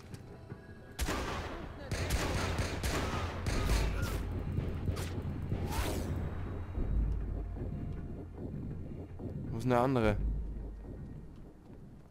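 Gunshots and explosions crack loudly in rapid bursts.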